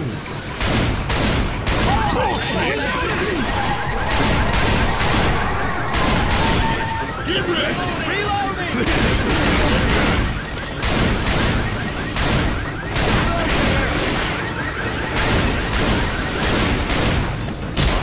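A car alarm blares with a repeating tone.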